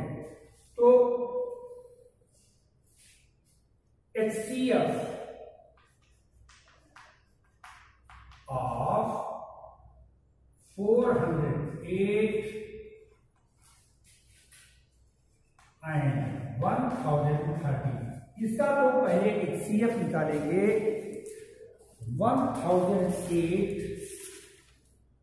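An elderly man speaks calmly in short bursts, close by.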